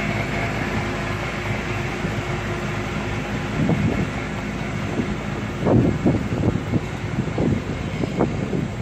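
Train carriages rumble and clatter slowly along the rails.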